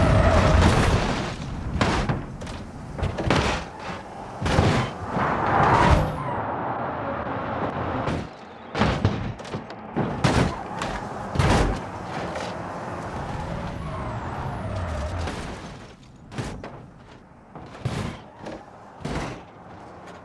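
A car crashes with loud metal crunches and bangs.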